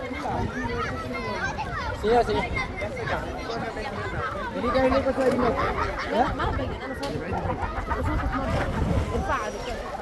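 Water laps and splashes as people swim nearby.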